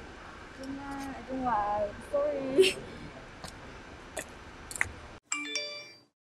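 A young woman speaks casually close by.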